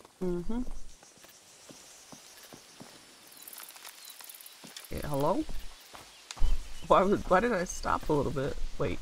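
Footsteps crunch softly on dry leaves and earth.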